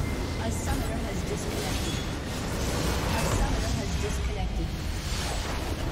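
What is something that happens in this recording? Video game spell effects crash and blast in a battle.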